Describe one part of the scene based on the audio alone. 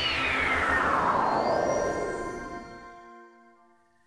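A shimmering magical chime sweeps downward and fades.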